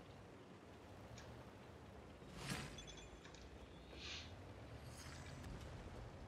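A tank cannon fires with a dull boom.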